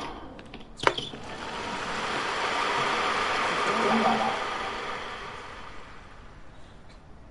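A crowd cheers and applauds loudly, then fades.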